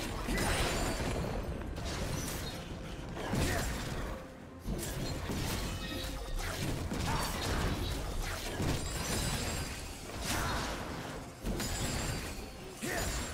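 Blades clash and magic blasts burst in a fast fight.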